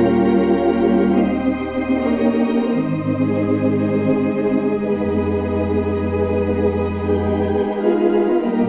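An organ plays slow, sustained chords.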